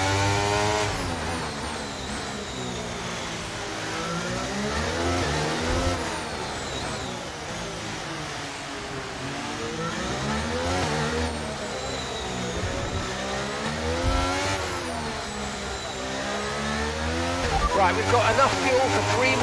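A racing car engine screams, rising and falling in pitch as gears shift.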